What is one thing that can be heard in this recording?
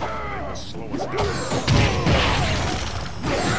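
A crackling icy blast whooshes.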